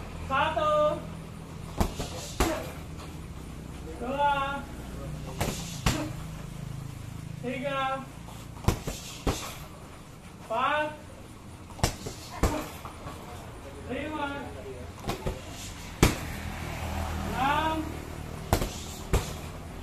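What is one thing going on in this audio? Fists and shins thud against heavy punching bags.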